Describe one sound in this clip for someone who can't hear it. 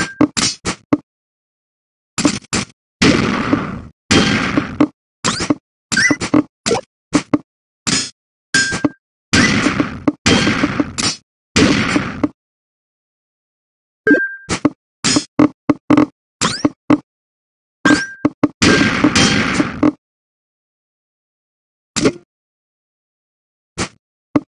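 Game blocks click into place with short electronic sounds.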